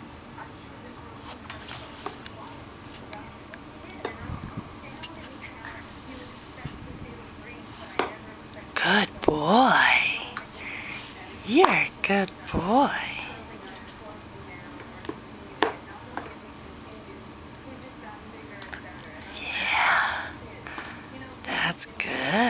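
Plastic cups knock and clatter together.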